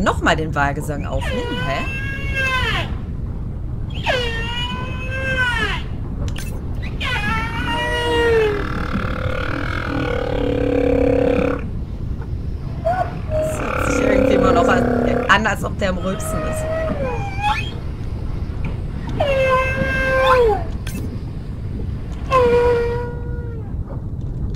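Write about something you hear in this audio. A humpback whale sings in long, rising and falling moans and whoops.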